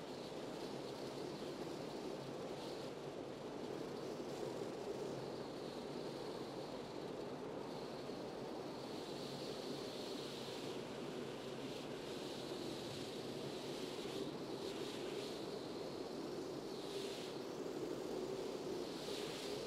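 Gloved hands rub softly against bare skin.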